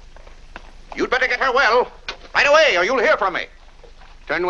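A man calls out loudly outdoors.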